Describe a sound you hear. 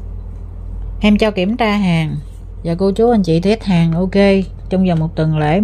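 A woman speaks with animation close to the microphone.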